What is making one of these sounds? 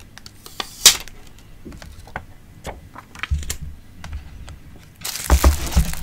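Plastic parts click and knock as hands handle a small device.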